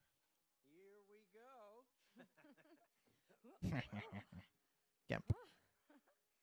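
An elderly man calls out cheerfully, close by.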